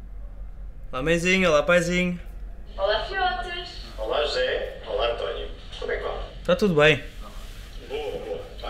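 A woman speaks cheerfully through an online call.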